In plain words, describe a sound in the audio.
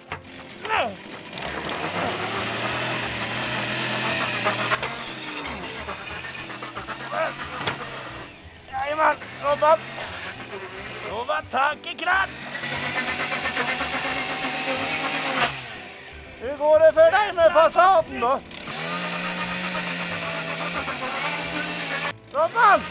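A chainsaw engine roars steadily.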